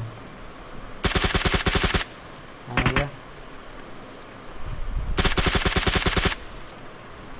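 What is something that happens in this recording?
A rifle fires in rapid bursts, loud and close.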